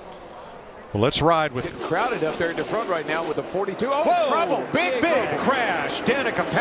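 Race car engines roar loudly as cars speed past.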